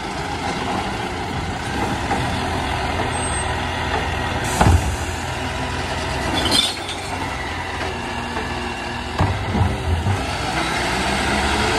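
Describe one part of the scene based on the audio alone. A garbage truck engine idles with a steady low rumble.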